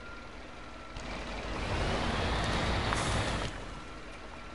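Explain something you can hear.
A truck engine rumbles and roars as it drives over a dirt track.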